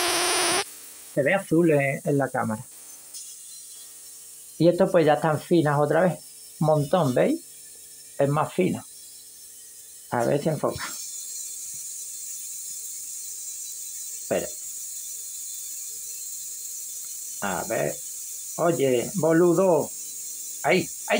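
A plasma globe hums faintly and steadily.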